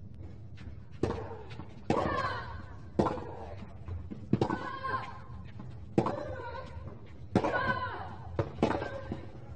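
Tennis balls are struck hard with rackets in a steady rally.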